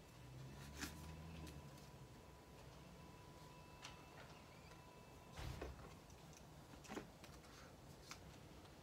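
Paper stickers peel and rustle.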